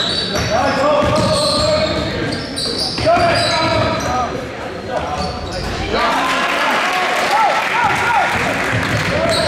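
A basketball bounces with dull thuds on the floor.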